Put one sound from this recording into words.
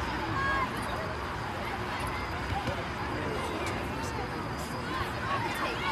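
A crowd of spectators chatters and calls out outdoors from a distance.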